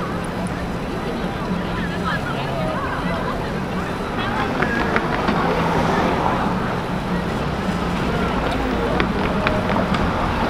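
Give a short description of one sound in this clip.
Busy city traffic hums steadily outdoors.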